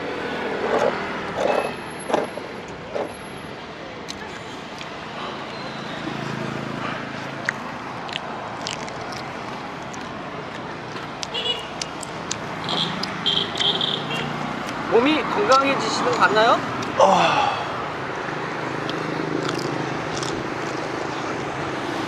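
Traffic passes by on a nearby road.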